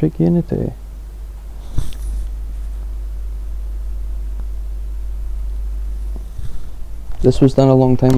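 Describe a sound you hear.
Paper pages rustle as a notebook is handled.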